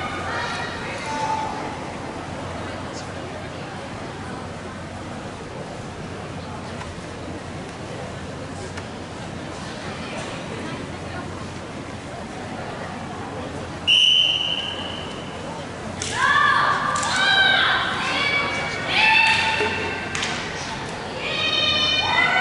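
Young women shout sharp, echoing battle cries in a large hall.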